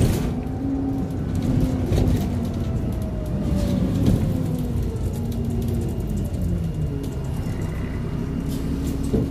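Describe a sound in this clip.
Loose fittings rattle and knock on a moving bus.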